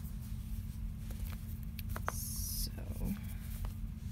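Paper rustles as a sketchbook is moved.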